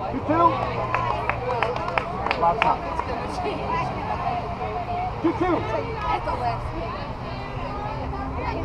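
Young women on a team shout and cheer outdoors.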